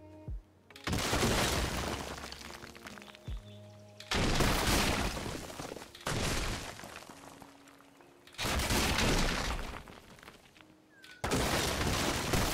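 Stone crumbles and crashes in loud, repeated bursts.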